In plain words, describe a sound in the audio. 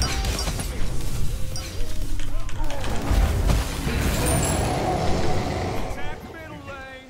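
Magical spell blasts crackle and boom in quick succession.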